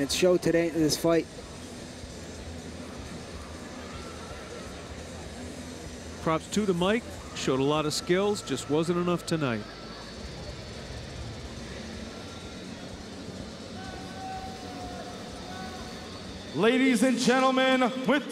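A man announces loudly through a loudspeaker in a large echoing hall.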